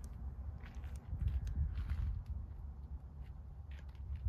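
Footsteps scuff on pavement close by.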